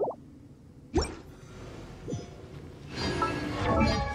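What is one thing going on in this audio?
Sword strikes crash in a fight.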